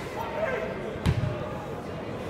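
A football is kicked hard with a dull thud.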